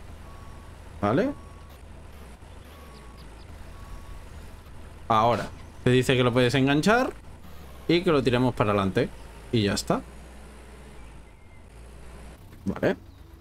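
A young man talks with animation into a microphone in short bursts.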